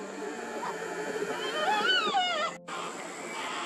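A cockatoo calls with wailing cries from a tree.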